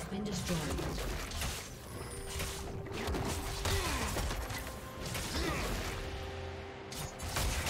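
Game hits land with sharp impacts.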